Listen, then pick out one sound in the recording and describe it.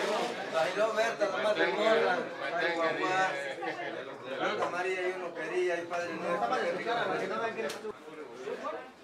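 A middle-aged man speaks loudly and with animation close by.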